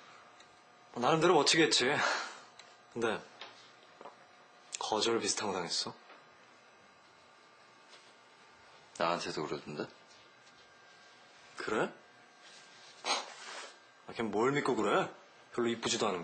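Another young man answers with animation.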